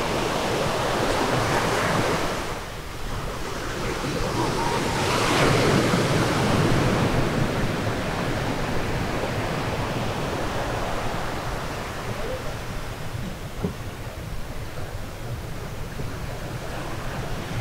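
Waves break and wash onto a shore.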